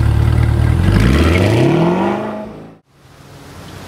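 A sports car pulls away, its engine roaring then fading quickly.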